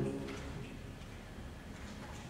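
Tuned tubes are struck and ring with soft, low tones.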